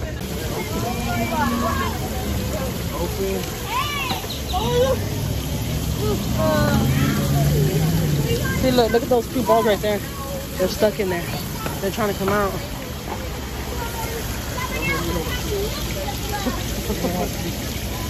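Children talk and call out nearby outdoors.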